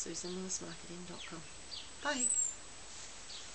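An older woman speaks calmly close by.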